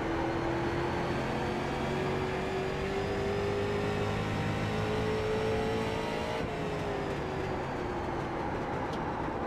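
A race car engine roars steadily at high revs, its pitch rising slowly and then dropping as the car lifts off.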